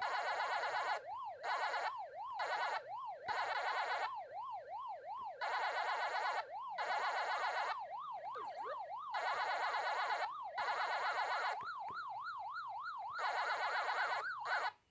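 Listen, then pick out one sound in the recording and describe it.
A rising and falling electronic siren drones steadily from a retro arcade game.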